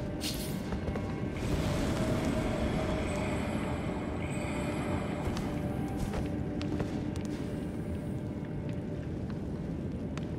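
A torch flame crackles and roars.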